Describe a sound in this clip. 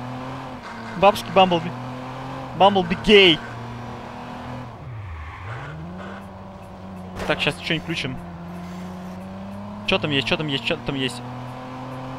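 A car engine hums steadily, dropping low as the car slows and then revving up again.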